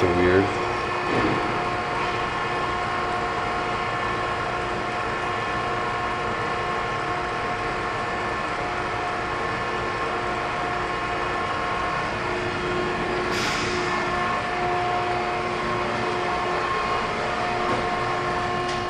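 Machinery hums steadily with a low drone.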